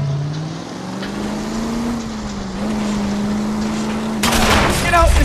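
A car engine hums steadily as a car drives.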